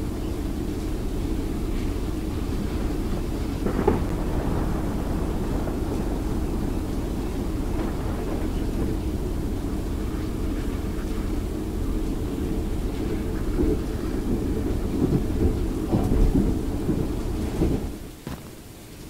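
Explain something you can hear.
A heavy vehicle engine rumbles steadily as it drives over rough ground.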